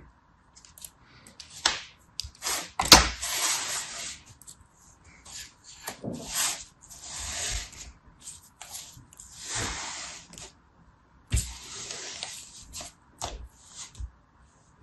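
Hands press and squash soft kinetic sand, with gentle crunching and rustling.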